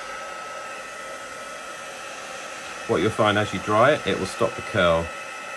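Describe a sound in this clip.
A heat gun blows with a steady whirring hiss.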